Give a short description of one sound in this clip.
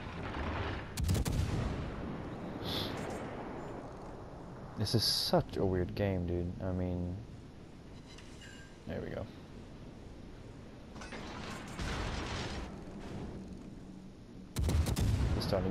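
Heavy naval guns fire in booming blasts.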